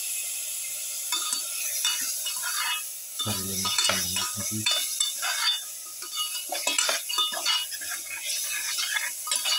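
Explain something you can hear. A metal spatula scrapes and clinks against a pot.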